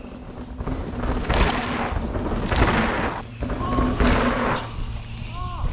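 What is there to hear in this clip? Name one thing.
Mountain bikes roll quickly past on a dirt trail with a rushing whoosh.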